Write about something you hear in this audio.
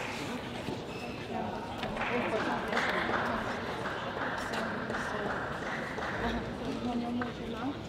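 A woman talks quietly at a distance.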